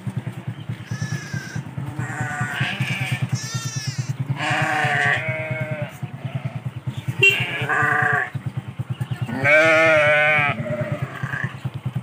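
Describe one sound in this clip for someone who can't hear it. Sheep bleat loudly, many times.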